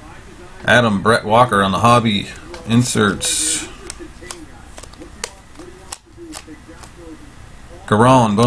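Trading cards flick and rustle as a hand sorts through them.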